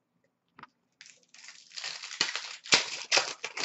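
A plastic wrapper crinkles as hands tear it open.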